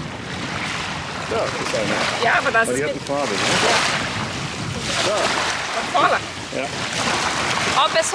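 Water splashes around bare feet in the shallows.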